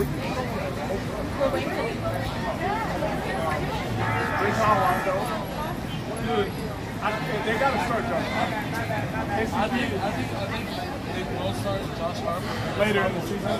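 Several men and women talk at once close by outdoors.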